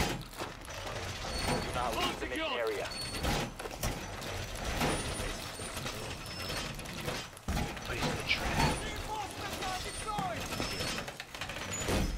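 Metal clanks and thuds as heavy barricades are set in place.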